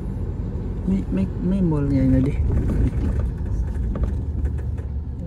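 A vehicle's engine rumbles steadily while driving along a street.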